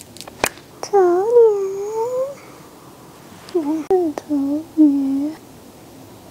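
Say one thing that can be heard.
A young woman speaks playfully, close by.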